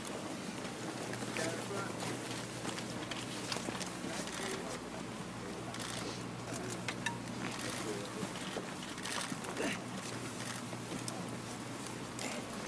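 A man speaks steadily into microphones outdoors.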